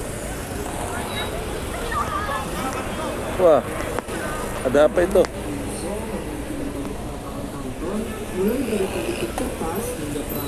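Motorcycle and van engines idle and rumble in traffic outdoors.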